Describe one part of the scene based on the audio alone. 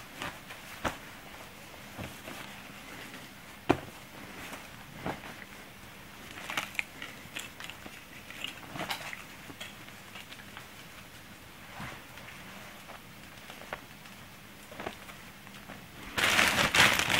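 Clothes rustle softly as hands sort through them.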